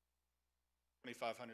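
A man starts speaking into a microphone from a lectern.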